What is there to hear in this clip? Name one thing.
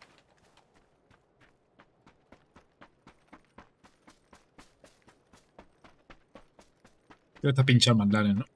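Footsteps rustle through grass at a steady pace.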